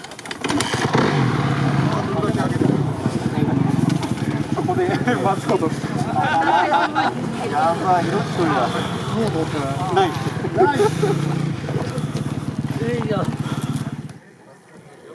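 Many motorbike engines idle and rev nearby.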